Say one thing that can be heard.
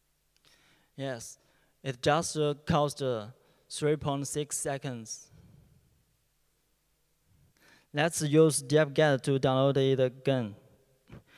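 A young man speaks calmly into a microphone, with pauses.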